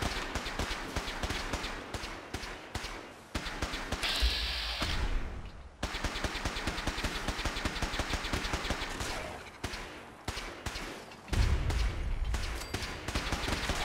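Footsteps crunch steadily over gravel and dirt.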